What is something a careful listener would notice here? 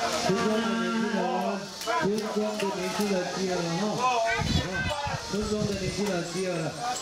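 Elderly women sing a slow chant together nearby.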